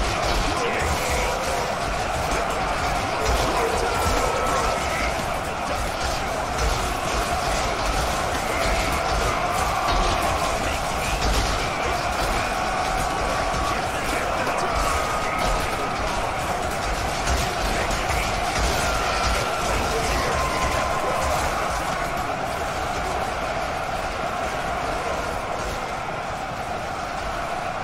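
Swords and shields clash in a large melee.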